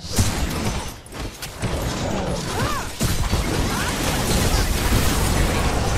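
A large creature roars.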